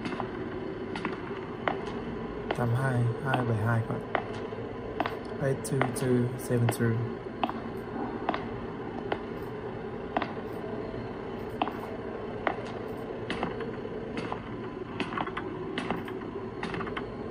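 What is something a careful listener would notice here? Footsteps from a game play through a small tablet speaker at a steady walking pace.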